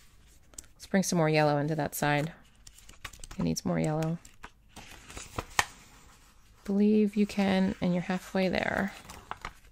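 Stiff paper rustles and flaps as pages are turned.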